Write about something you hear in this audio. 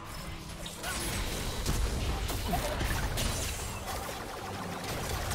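Game spell effects crackle and burst in a fight.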